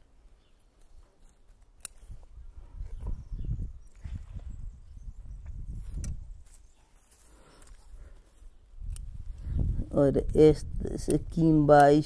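Pruning shears snip small branches.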